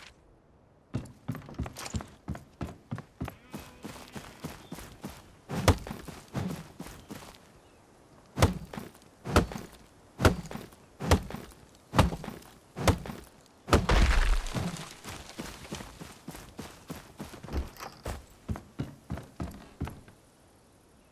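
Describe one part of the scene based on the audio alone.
Footsteps run quickly over wood and grass.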